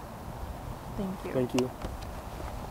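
A young woman speaks briefly and calmly close by.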